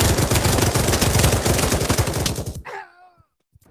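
A light machine gun fires in rapid bursts.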